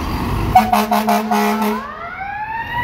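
A fire engine's air horn blasts in short bursts.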